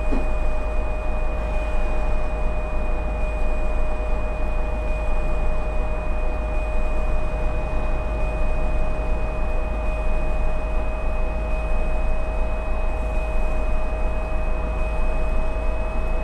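A bus engine hums steadily while driving at speed.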